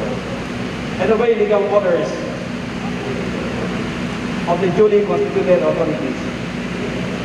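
A man speaks into a microphone in short bursts.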